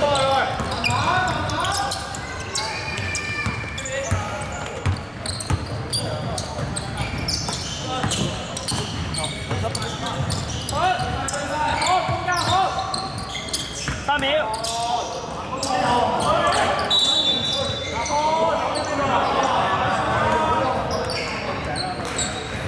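A basketball bounces on the court with hollow thuds.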